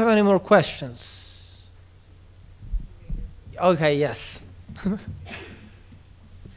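A man speaks into a microphone in short bursts, heard through loudspeakers in a reverberant hall.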